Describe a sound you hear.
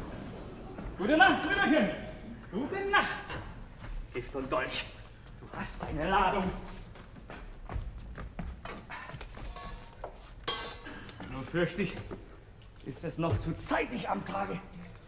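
A man sings loudly on a stage, with his voice carrying through a large room.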